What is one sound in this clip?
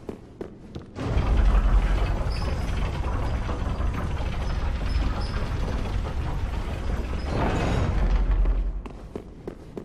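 A heavy lift rumbles loudly as it moves.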